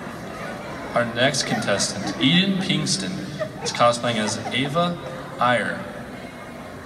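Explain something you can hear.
A man speaks into a microphone, echoing in a large hall.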